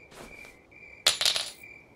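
A small metal key is picked up with a sharp clatter.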